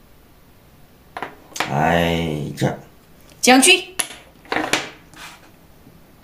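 A wooden game piece clicks down on a board.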